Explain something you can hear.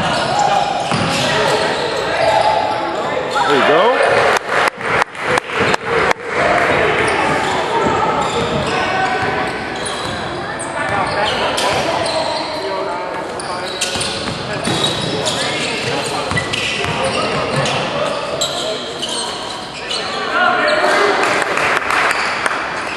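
Spectators chatter in a large echoing gym.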